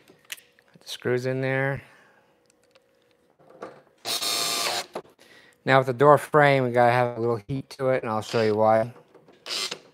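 A cordless drill whirs in short bursts, rising in pitch as it spins up.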